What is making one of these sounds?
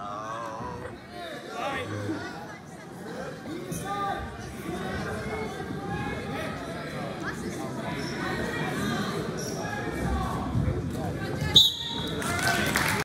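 A crowd of spectators talks and cheers in a large echoing gym.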